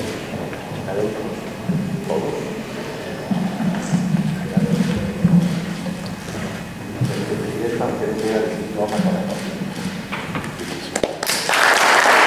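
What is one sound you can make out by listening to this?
An elderly man speaks into a microphone in a large echoing hall.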